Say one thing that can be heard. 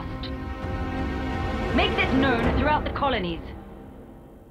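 A woman speaks forcefully, close by.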